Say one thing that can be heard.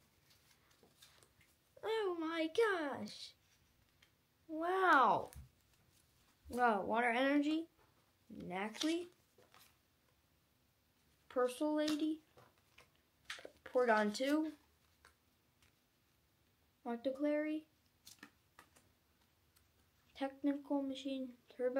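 Cards rustle and tap in a boy's hands.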